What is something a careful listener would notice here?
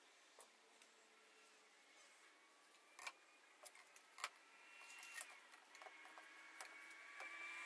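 Small plastic parts click and knock together.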